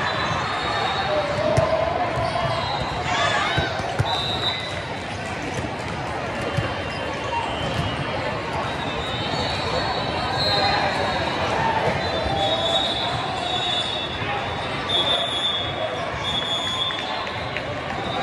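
Balls thud and bounce on a hard floor.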